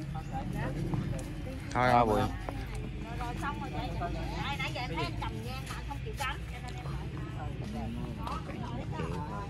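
Several men and women talk with animation close by, outdoors.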